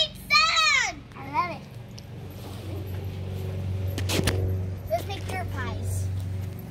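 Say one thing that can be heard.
A young girl talks with animation nearby.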